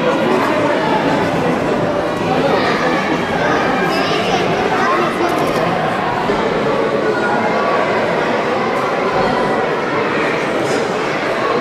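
A crowd of children and adults chatters in a busy, echoing room.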